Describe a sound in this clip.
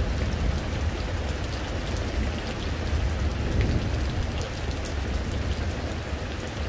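Wind buffets and rumbles steadily outdoors.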